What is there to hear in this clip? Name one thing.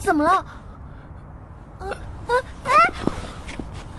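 A young woman speaks in a shaky, upset voice close by.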